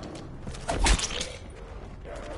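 A monster snarls and roars up close.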